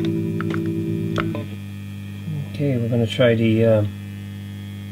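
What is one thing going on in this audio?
An electric guitar plays through an amplifier, throbbing with a tremolo effect.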